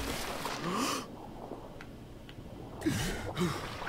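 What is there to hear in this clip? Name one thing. Sound turns dull and muffled underwater for a moment.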